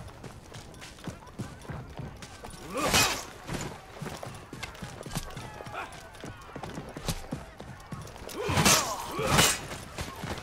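Swords clash and clang against shields.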